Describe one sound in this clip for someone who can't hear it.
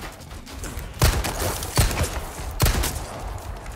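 A handgun fires several loud shots in quick succession.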